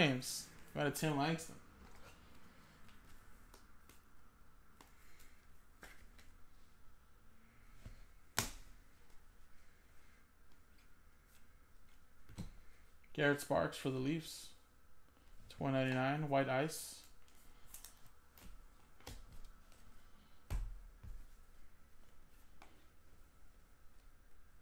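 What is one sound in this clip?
Trading cards rustle and click as they are shuffled.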